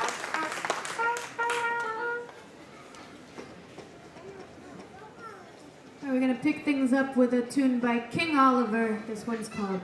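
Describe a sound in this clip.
Brass horns play a lively tune.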